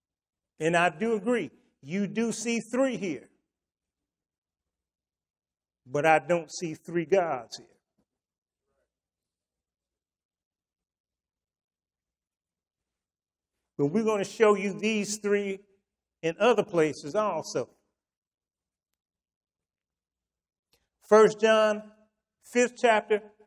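An elderly man speaks calmly through a microphone, in short phrases with long pauses.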